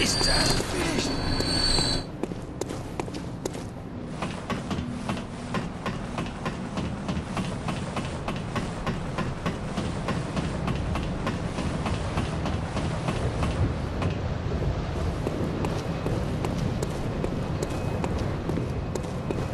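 Boots tread on stone paving.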